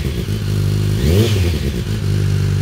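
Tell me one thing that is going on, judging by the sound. A motorcycle engine revs up briefly and drops back.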